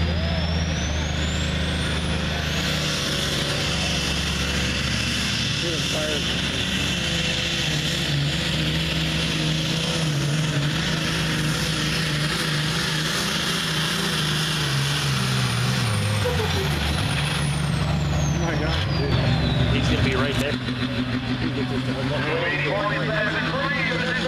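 A pulling tractor's engine roars loudly and steadily, then its pitch drops.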